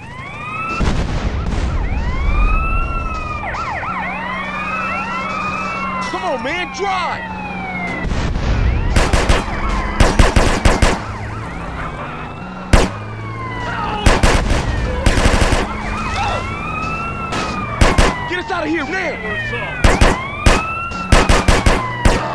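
A police siren wails up and down.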